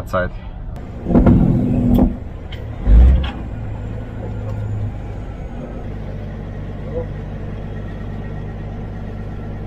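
A truck's diesel engine idles with a steady low rumble.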